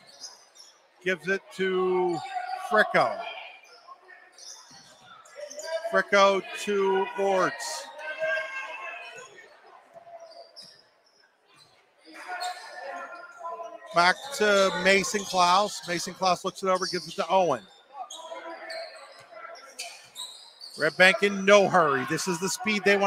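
A crowd shouts and cheers in a large echoing gym.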